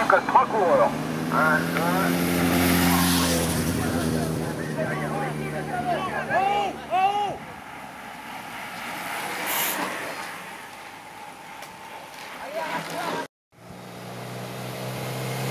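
A motorbike engine drones as a motorbike rides by.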